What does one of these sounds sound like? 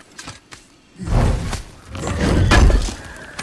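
A deep magical rumble bursts out and swells.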